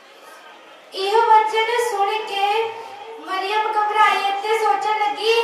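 A young woman speaks loudly and with feeling through a loudspeaker, in an echoing hall.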